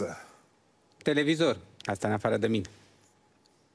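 A man answers in a calm voice.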